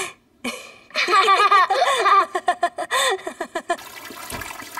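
A woman laughs heartily close by.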